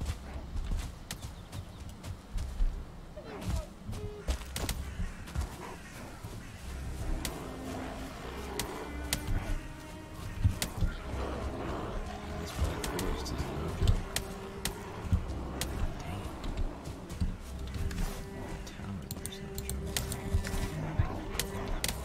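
Footsteps thud on soft ground at a running pace.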